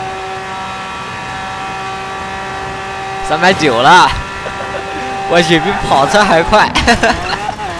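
A van engine drones steadily at high speed.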